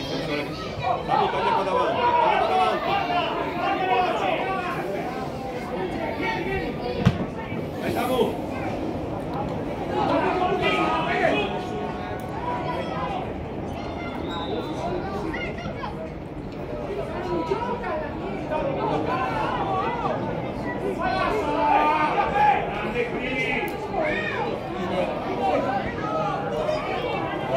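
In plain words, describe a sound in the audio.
Players shout to each other outdoors across an open pitch.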